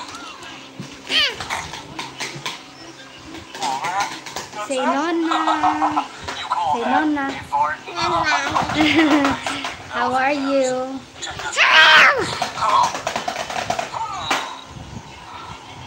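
A little girl laughs and squeals.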